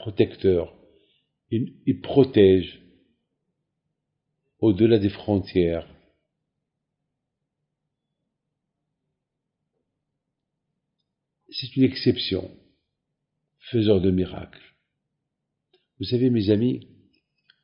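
An elderly man speaks calmly and slowly in short phrases, close to a microphone.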